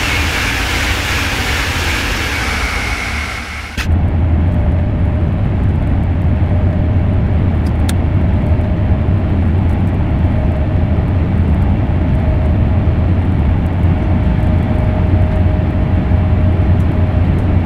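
A high-speed train rushes along the tracks with a steady rumble.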